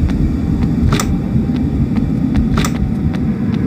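A locked door handle rattles with sharp clicks.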